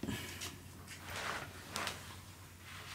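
Wood scrapes and rubs as pieces are shifted.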